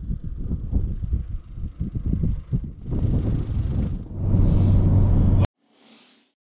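Strong wind gusts and buffets outdoors.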